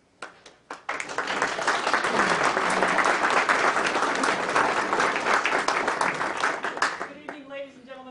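A group of people applaud loudly in a room.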